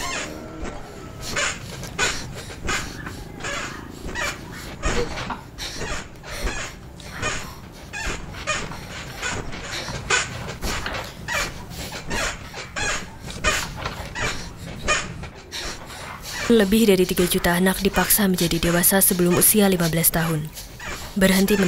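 A mattress thumps and creaks under a bouncing child.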